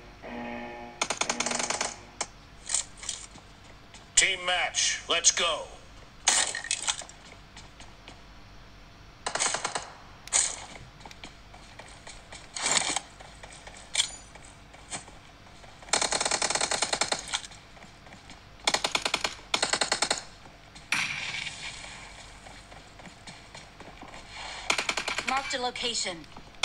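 Bursts of gunfire from a mobile game play through a phone speaker.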